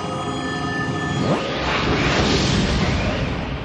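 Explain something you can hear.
An eerie electronic hum throbs, then swells into a roaring rush and slowly fades.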